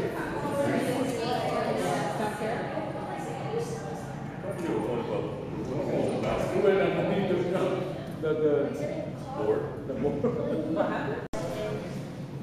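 A crowd of spectators chatters and calls out in an echoing rink.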